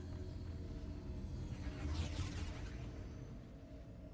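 Magic spells whoosh and clash in a fight.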